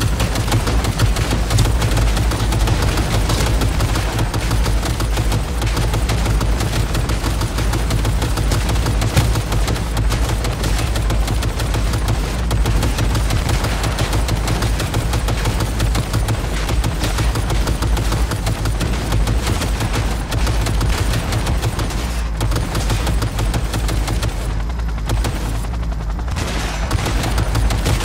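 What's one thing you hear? A heavy machine gun fires in rapid, continuous bursts.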